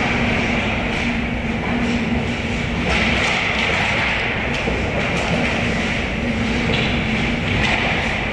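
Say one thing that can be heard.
Hockey sticks clack against a puck and each other.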